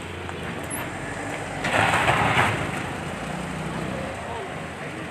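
A tow truck's engine rumbles nearby.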